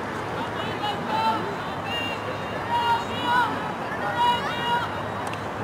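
A hockey stick clacks against a ball.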